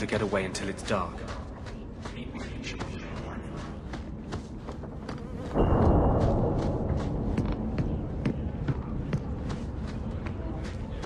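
Footsteps thud on stone at a steady running pace.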